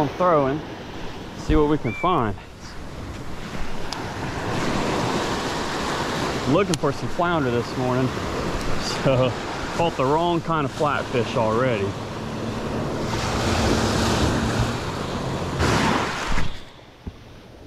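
Small waves break and wash up onto the shore.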